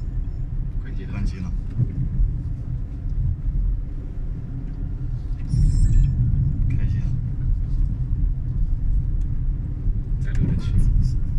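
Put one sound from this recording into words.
A car drives along a road, its low rumble heard from inside.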